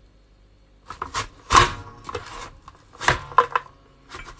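A plastic vegetable chopper clunks as its handle is pushed down.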